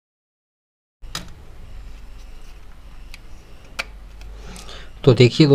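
Small plastic parts of a phone click and tap as hands take it apart.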